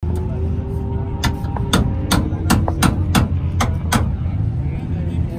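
A ratchet wrench clicks rapidly.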